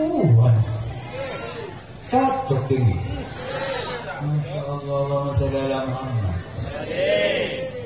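A second man sings along into a microphone, heard through loudspeakers.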